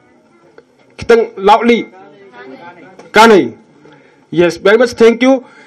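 A young man speaks loudly into a microphone, heard through loudspeakers in a large room.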